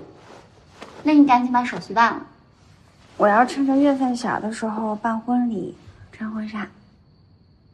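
A young woman speaks softly and playfully up close.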